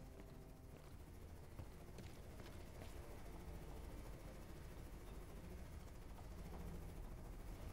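Footsteps tread on hard ground at a steady walking pace.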